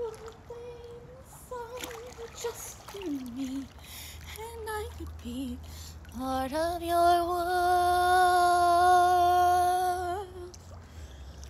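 A young woman sings close by, holding a long high note.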